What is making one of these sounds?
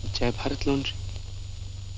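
A man speaks briefly with feeling.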